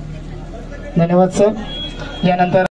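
A young man speaks into a microphone over a loudspeaker.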